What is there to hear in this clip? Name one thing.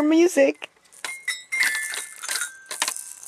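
Toy xylophone bars are struck, ringing with bright tinkling notes.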